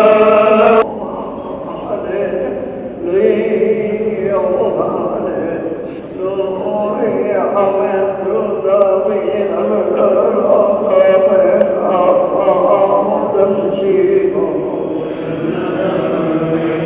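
A group of men chant together slowly in an echoing hall.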